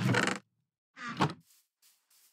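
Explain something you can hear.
A wooden chest creaks shut.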